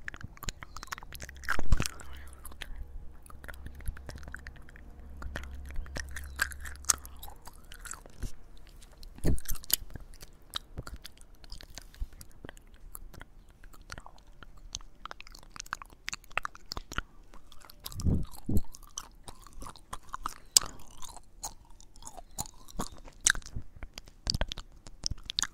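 Wet mouth clicks and smacks sound very close to a microphone.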